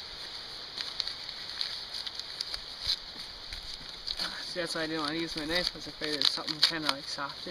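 A plastic packet crinkles in someone's hands.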